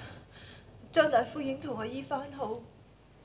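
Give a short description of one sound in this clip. A young woman speaks in a low, worried voice, close by.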